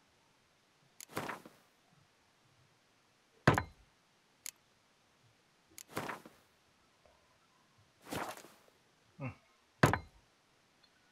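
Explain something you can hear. Soft clicks and swishes of a game menu sound now and then.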